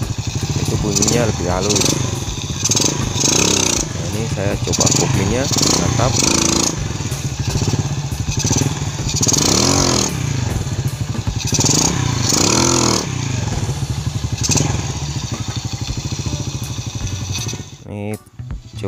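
A small motorcycle engine revs hard, rising and falling in bursts.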